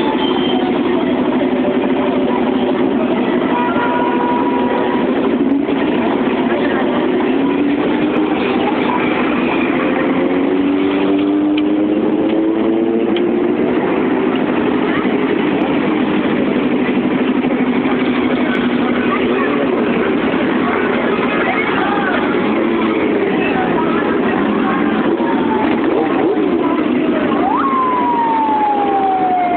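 Motorcycle engines rumble and rev nearby.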